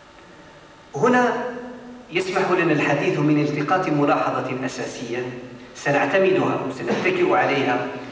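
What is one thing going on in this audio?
A man recites in a drawn-out voice through loudspeakers in an echoing hall.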